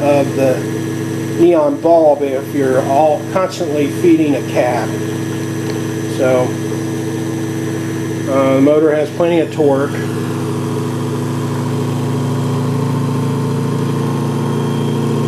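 An electric machine hums steadily and grows a little louder toward the end.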